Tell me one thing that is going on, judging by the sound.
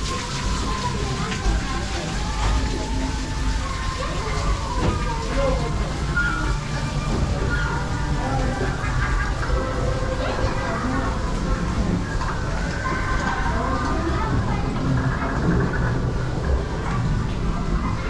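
A ride car rumbles steadily along its track.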